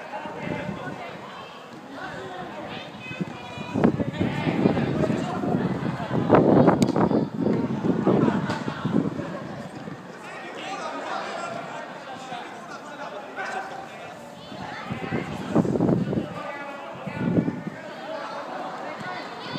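Young players shout and call out.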